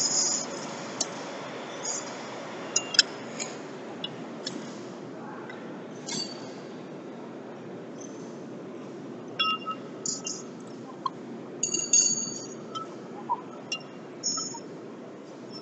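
Metal wheel nuts click and clink as a wrench turns them.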